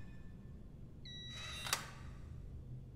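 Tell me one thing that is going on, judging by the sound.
A metal locker door clanks open.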